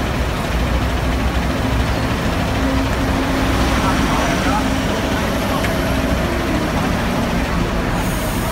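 A bus engine idles.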